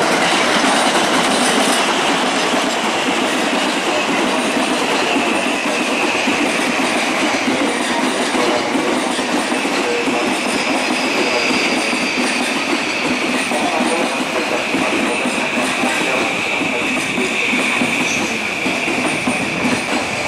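Train wheels squeal with a long, high whine.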